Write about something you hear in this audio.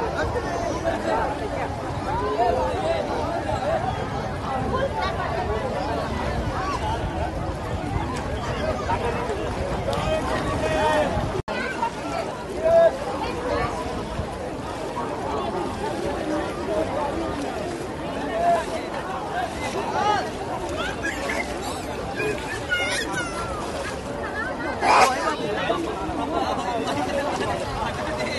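Water splashes as people wade through a shallow river.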